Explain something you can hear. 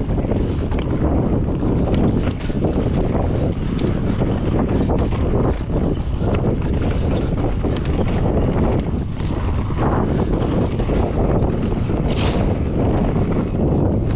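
Wind rushes loudly past, buffeting the microphone.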